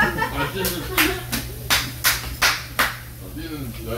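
Hands clap several times.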